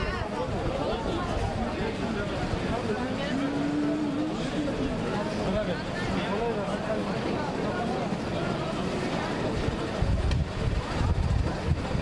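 Many men and women talk at once outdoors, a busy crowd murmur.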